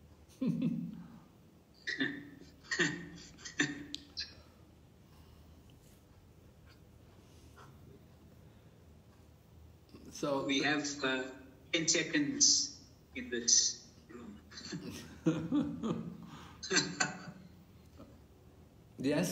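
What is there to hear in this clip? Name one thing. An elderly man speaks close to a microphone, calmly and in short bursts.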